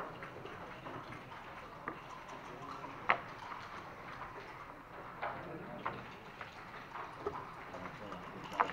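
Backgammon checkers click and clack against a wooden board.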